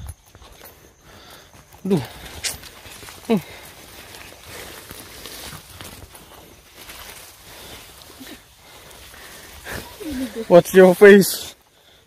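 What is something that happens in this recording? Tall grass swishes and brushes against a walker pushing along a path.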